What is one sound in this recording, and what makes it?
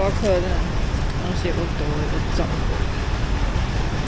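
A bag rustles and a zipper is pulled.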